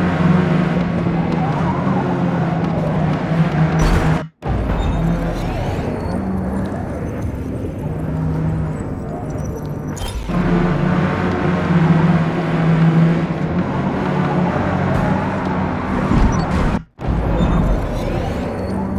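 A racing car engine roars loudly, its pitch rising and falling as it shifts gears.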